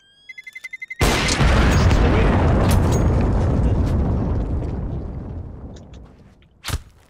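A sniper rifle fires a single loud shot that booms and slowly rumbles away.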